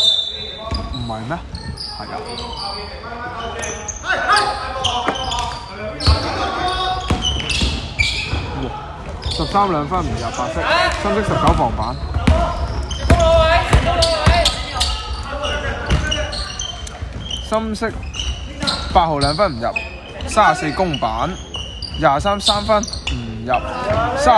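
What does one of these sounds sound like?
Young men call out to each other across an echoing hall.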